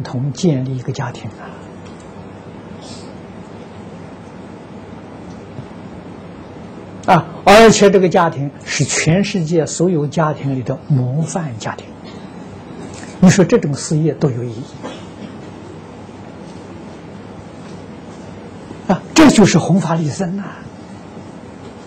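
An elderly man speaks calmly, with pauses, close to a microphone.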